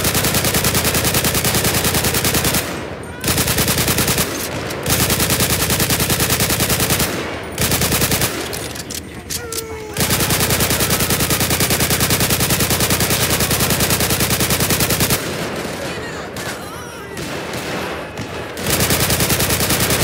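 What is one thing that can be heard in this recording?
An automatic rifle fires in long rapid bursts.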